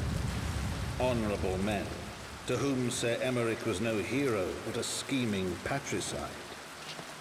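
A man speaks calmly and gravely, close and clear.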